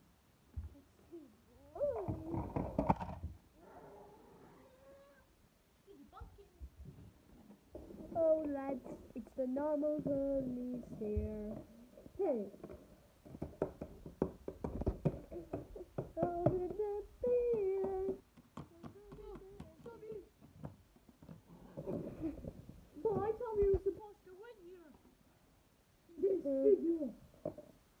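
Small plastic toy figures click and tap against a wooden floor.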